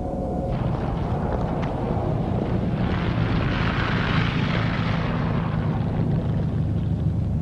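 A car drives past on a snowy street.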